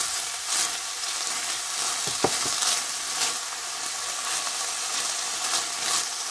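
A spatula scrapes and stirs beans in a pan.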